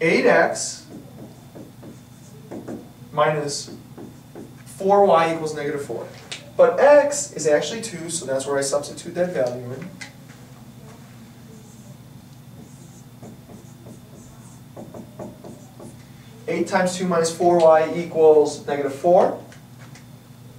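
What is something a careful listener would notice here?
A man explains calmly, lecturing.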